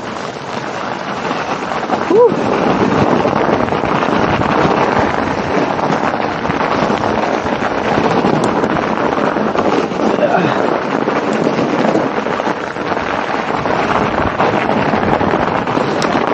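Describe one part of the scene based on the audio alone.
Bicycle tyres crunch over snow.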